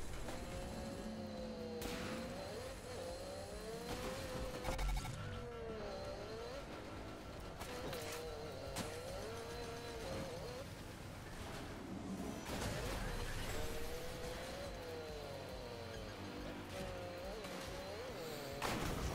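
A vehicle engine revs and whines, rising and falling in pitch.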